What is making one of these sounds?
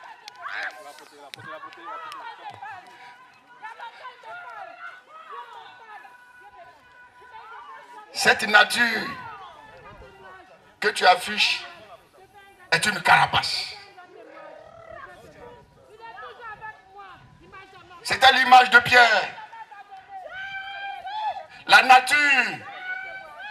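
A man preaches with animation into a microphone over loudspeakers, shouting out at times.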